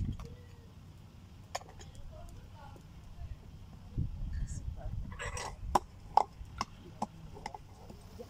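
Ceramic plates clatter as they are handed over.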